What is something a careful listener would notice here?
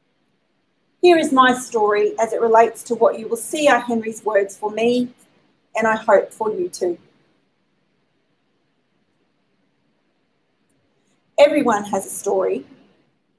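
A woman speaks into a microphone with pauses, her voice heard through a loudspeaker.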